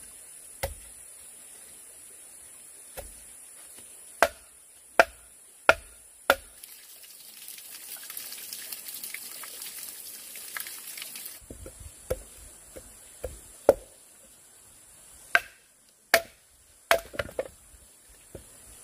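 A blade chops into bamboo with sharp, hard knocks.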